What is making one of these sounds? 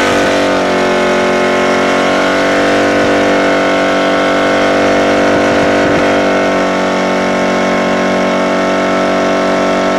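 A car engine roars loudly at high revs.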